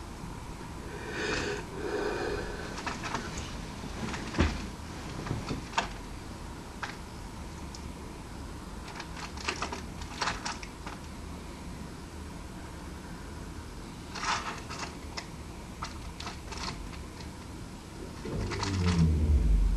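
A bird pecks and tugs at a crinkling plastic wrapper.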